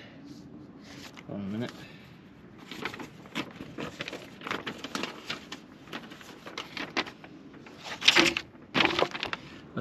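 Paper pages rustle and crinkle close by.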